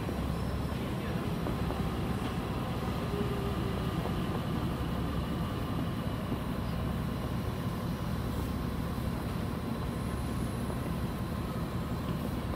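An electric commuter train rolls past close by.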